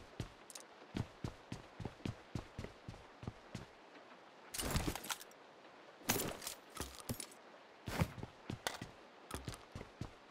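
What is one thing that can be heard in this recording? Footsteps thud quickly on a hollow wooden floor.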